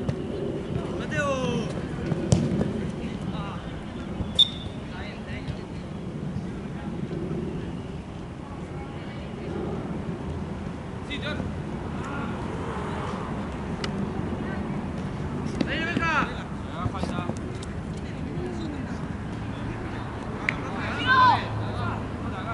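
Young men shout outdoors.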